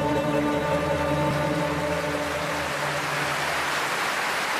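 A man sings a long held note into a microphone.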